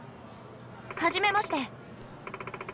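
A teenage girl speaks a brief, cheerful phrase, close and clear.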